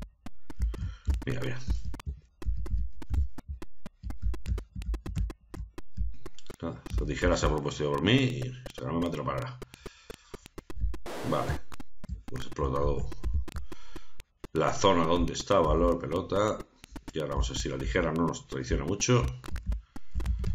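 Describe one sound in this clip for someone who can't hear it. A man talks calmly into a microphone, close by.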